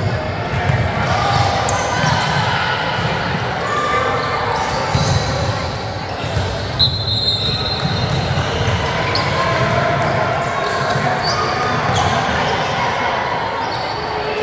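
A basketball bounces on a wooden court in a large echoing gym.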